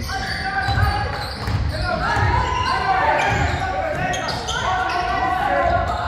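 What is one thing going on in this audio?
A basketball thuds repeatedly on a wooden floor in an echoing hall.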